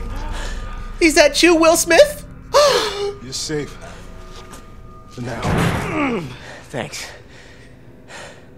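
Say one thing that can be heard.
A man speaks weakly and gasps in pain, close by.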